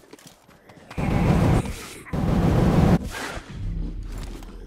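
A flamethrower roars and whooshes.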